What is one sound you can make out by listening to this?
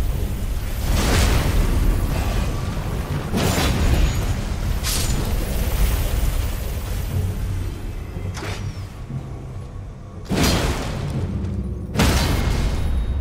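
Metal weapons clash and slash in a fight.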